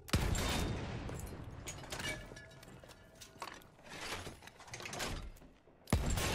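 A heavy shell clanks as it is loaded into the gun's breech.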